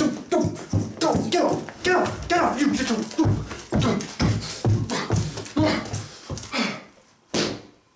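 A young man talks quickly and with animation close by.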